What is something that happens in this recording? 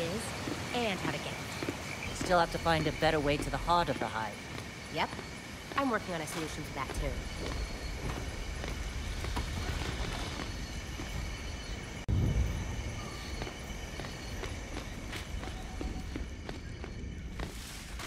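Heavy boots thud steadily on stone.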